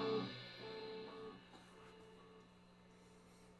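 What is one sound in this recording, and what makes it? An electric guitar plays notes through an amplifier that ring out and fade.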